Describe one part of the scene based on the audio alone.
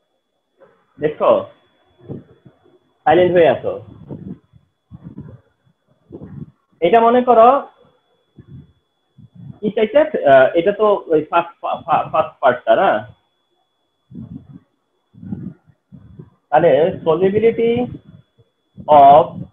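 A man speaks calmly and explains, close to a microphone, with pauses.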